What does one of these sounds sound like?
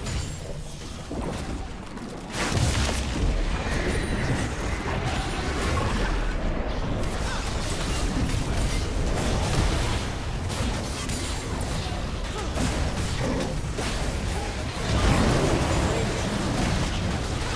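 Magic spells burst and crackle in a fast, busy fight.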